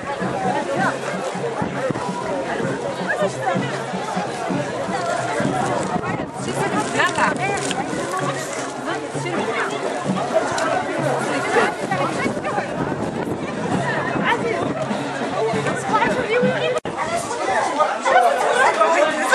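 A crowd of men and women chatter loudly outdoors.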